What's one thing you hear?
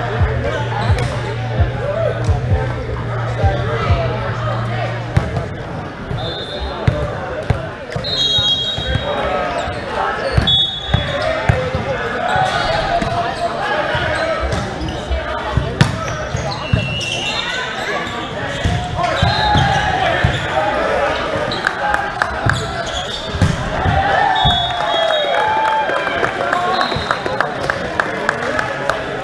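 A volleyball is struck with sharp smacks in a large echoing hall.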